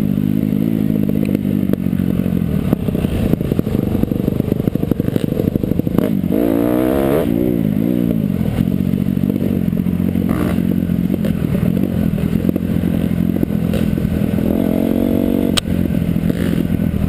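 A dirt bike engine roars up close, revving up and down.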